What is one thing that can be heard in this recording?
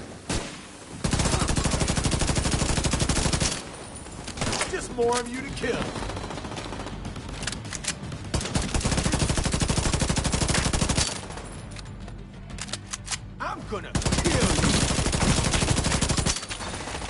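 A rifle fires rapidly in long bursts of automatic gunfire.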